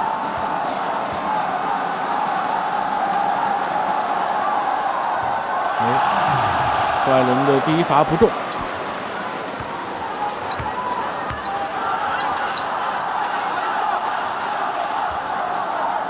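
A large crowd murmurs and cheers steadily in a big echoing arena.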